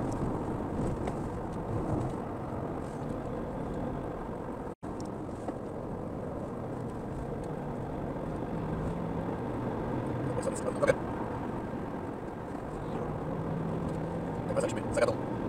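Tyres roll steadily on an asphalt road.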